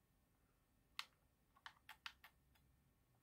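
A game controller's buttons and sticks click softly.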